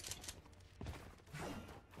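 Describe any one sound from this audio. Footsteps run quickly across a wooden floor.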